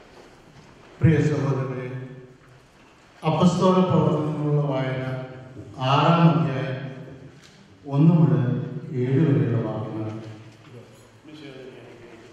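A man speaks calmly into a microphone, heard through a loudspeaker in an echoing hall.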